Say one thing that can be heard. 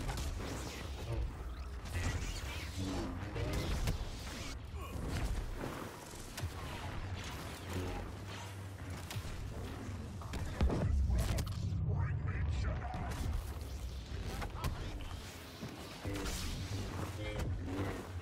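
Lightsabers clash with sharp crackling hits.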